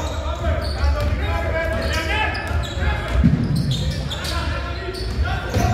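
Men shout and call out in a large echoing hall.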